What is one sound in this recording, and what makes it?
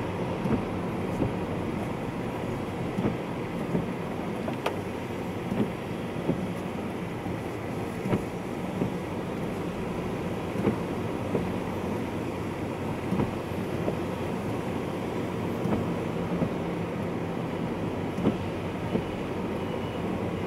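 A car drives along, heard from inside the cabin.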